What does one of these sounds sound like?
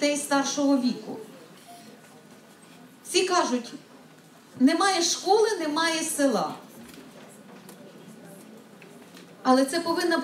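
A woman speaks through a microphone and loudspeakers in a large hall, in short bursts.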